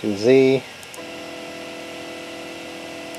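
A printer's motors whine steadily.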